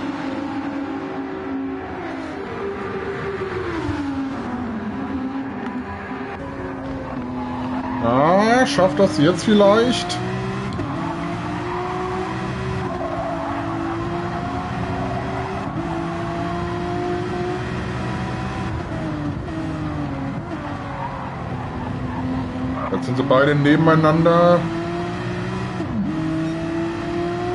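A race car engine roars steadily, rising and falling in pitch as it shifts gears.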